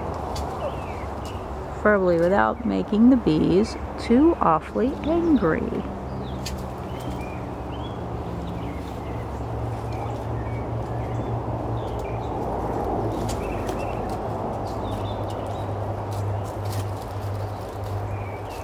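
Honeybees buzz around an open hive.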